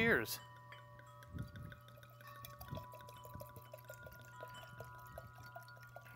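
Wine gurgles and splashes as it is poured into a glass.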